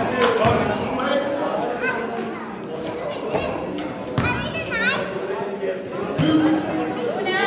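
Young men shout and talk across an echoing gym.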